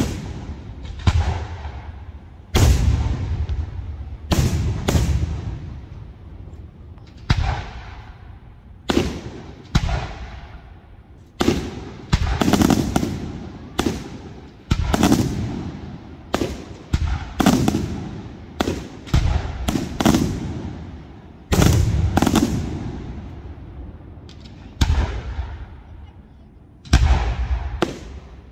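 Fireworks burst with loud booming bangs that echo and rumble away.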